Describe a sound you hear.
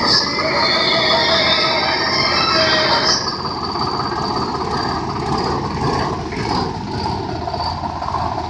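A tractor engine chugs steadily close by.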